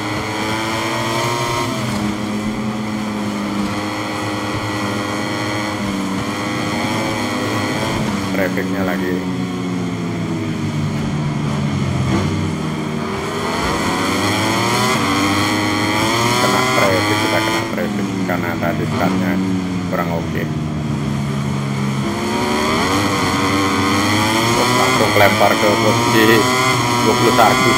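Motorcycle engines roar loudly, with their pitch rising and falling as they shift gears.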